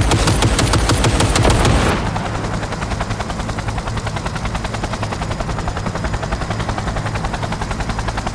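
Heavy rain patters steadily.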